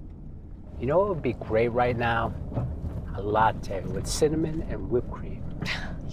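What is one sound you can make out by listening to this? A woman speaks from close by inside a car.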